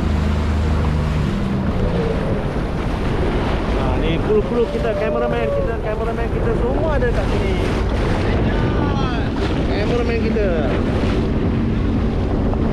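Waves splash and churn close by in open water.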